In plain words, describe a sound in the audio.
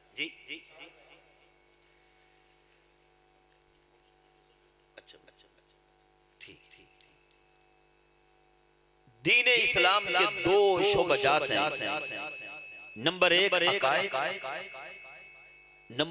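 A middle-aged man speaks forcefully through a microphone and loudspeakers, his voice echoing.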